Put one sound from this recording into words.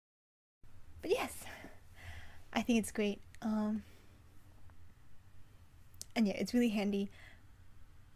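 A young woman talks casually and playfully close to a microphone.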